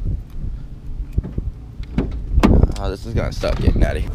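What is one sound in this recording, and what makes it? A car door latch clicks and the door swings open.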